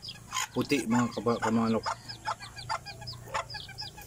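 A hen pecks at grain in a dish.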